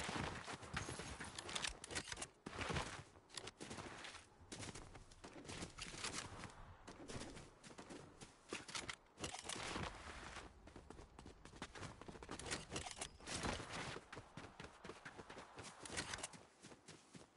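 Quick footsteps run over dry ground.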